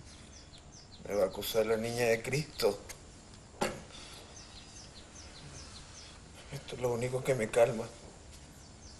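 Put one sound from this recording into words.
An elderly man speaks in a weak, strained voice nearby.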